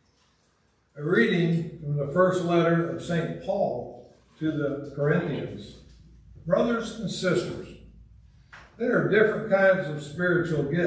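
An elderly man reads out aloud through a microphone in an echoing hall.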